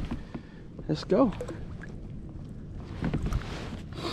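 A fish splashes into water as it is released.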